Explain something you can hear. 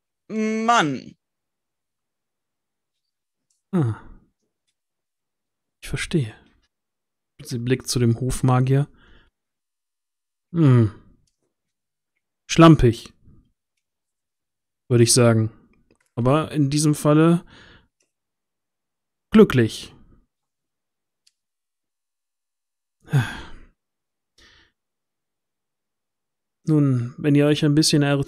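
A man speaks with animation into a headset microphone over an online call, in short bursts with pauses.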